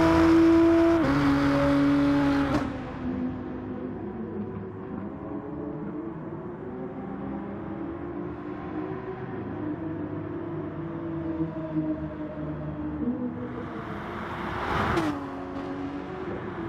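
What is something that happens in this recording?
A racing car engine roars at high revs, shifting gears as it speeds along.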